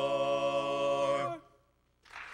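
A group of older men sing a held chord in close harmony.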